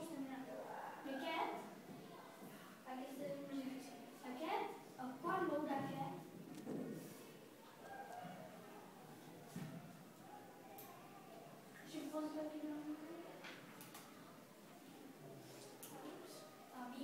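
A boy speaks aloud in a small room, explaining.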